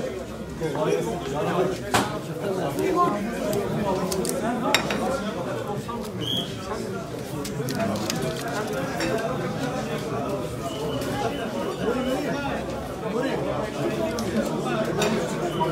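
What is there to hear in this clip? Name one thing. Ceramic plates clink together.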